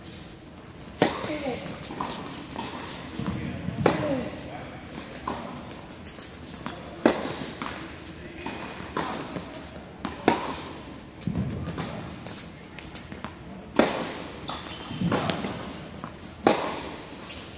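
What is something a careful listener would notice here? A tennis ball is struck with a racket again and again, echoing in a large hall.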